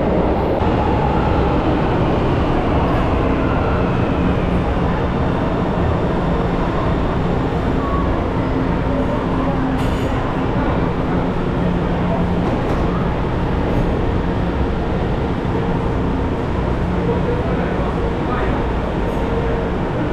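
A subway train rumbles loudly into the station and slows to a stop.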